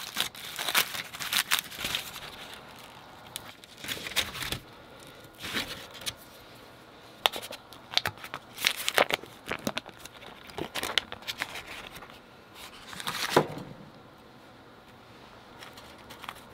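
A knife scrapes and taps on a board.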